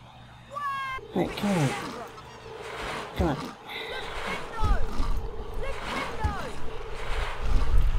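Creatures squeak and chatter.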